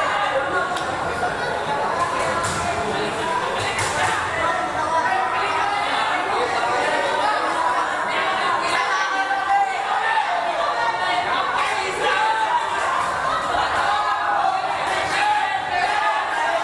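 A crowd chatters and shouts in a large echoing hall.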